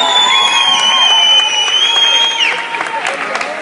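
Music plays loudly over loudspeakers in a large hall.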